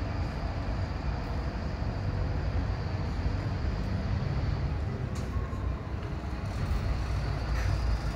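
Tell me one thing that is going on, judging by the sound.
A bus pulls in and slows to a stop.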